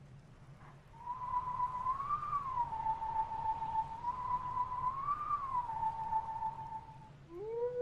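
A soft whistled tune plays a slow melody.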